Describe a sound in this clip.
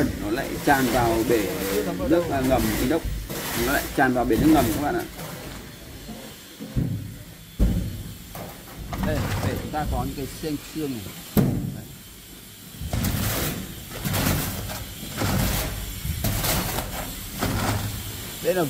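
A trowel scrapes and spreads wet mortar.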